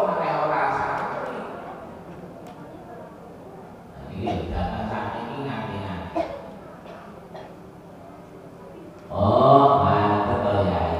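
A man chants prayers into a microphone in long drawn-out phrases.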